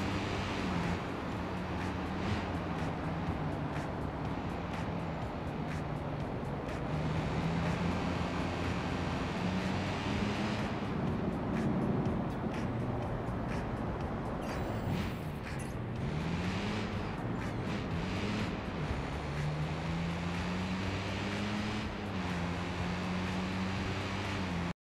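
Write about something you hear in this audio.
A car engine roars steadily and changes pitch as it speeds up and slows down.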